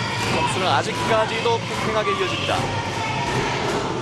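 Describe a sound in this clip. A volleyball is spiked with a sharp smack.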